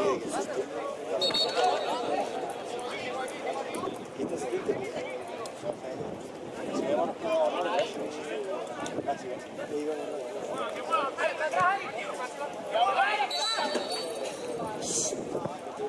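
Young players shout and call to each other across an open outdoor field.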